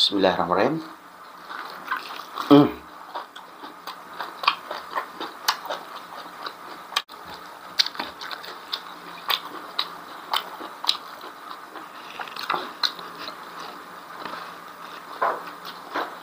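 A man chews food with wet smacking close to the microphone.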